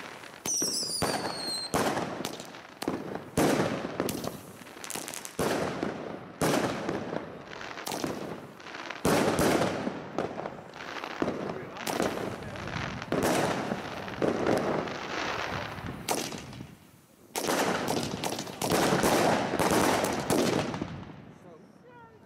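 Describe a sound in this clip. Fireworks boom and crackle loudly outdoors, one burst after another.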